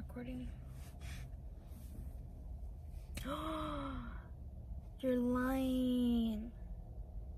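A young woman hums in short, drawn-out tones close by.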